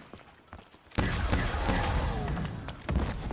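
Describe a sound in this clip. A ray gun fires a buzzing, zapping blast.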